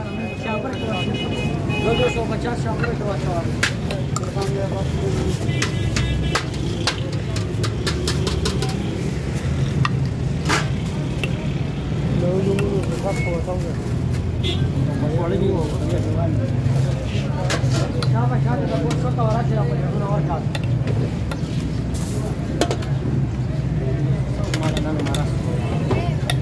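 A metal ladle scrapes and clinks against a large metal pot.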